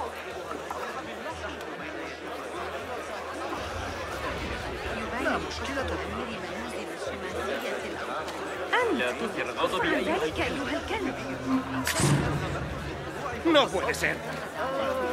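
A busy crowd of men and women murmurs and chatters nearby.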